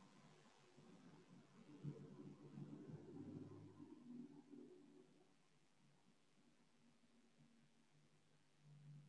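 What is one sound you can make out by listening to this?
A woman speaks calmly, heard through an online call.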